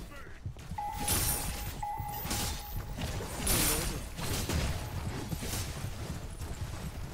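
Blades slash and clash in a fast fight.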